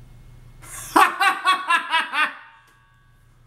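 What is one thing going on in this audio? A young man laughs out loud.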